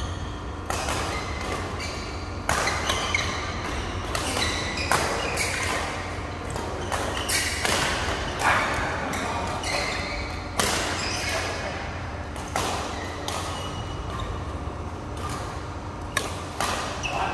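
Shuttlecocks are struck with rackets in sharp pops that echo around a large hall.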